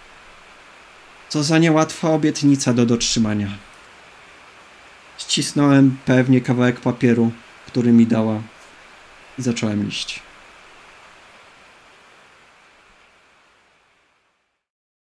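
Heavy rain pours down steadily, then fades away.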